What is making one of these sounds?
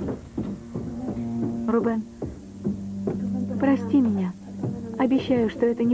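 A young woman speaks sharply nearby.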